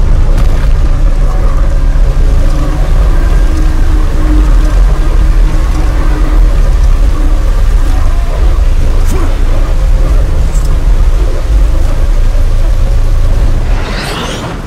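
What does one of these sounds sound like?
Water roars as it pours down in heavy streams.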